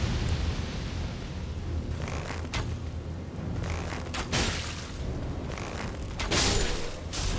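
Flames crackle and roar steadily.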